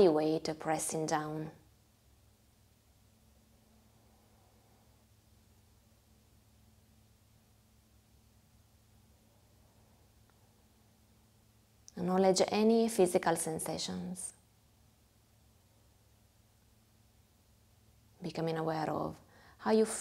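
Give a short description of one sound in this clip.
A harmonium plays a soft, steady drone.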